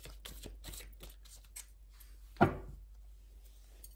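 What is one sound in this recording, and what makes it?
Cards shuffle and flick between hands.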